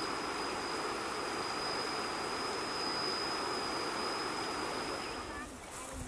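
Shallow river water rushes steadily over stones.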